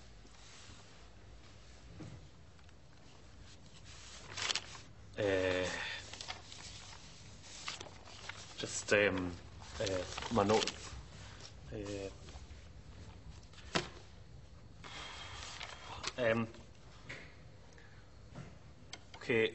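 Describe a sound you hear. A young man speaks calmly to a room, reading out.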